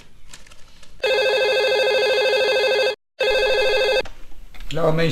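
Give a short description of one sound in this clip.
A telephone rings with a steady electronic tone.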